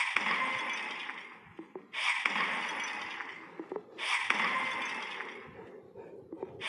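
Blocks crumble and shatter in rushing crunching bursts that each fade away.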